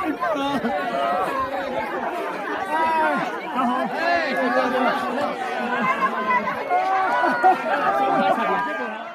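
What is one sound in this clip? A crowd of men and women chatter and call out excitedly outdoors.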